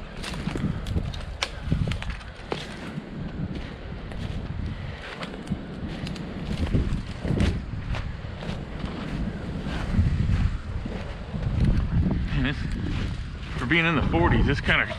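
Footsteps crunch through snow and dry leaves.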